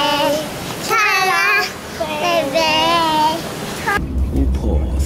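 A young boy squeals and talks excitedly close by.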